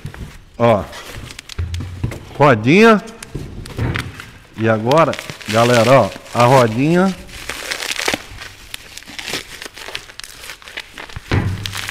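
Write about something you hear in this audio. Plastic wrapping crinkles as it is pulled off.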